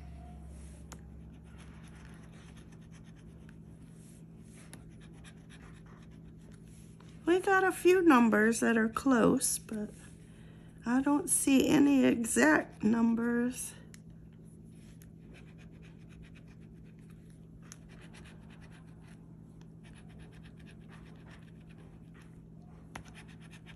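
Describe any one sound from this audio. A metal edge scrapes across a scratch card.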